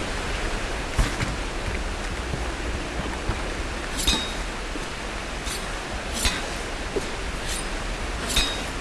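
A climber's hands slap and scrape against rock in short bursts.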